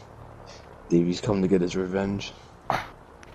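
A second man answers in a low, gruff voice.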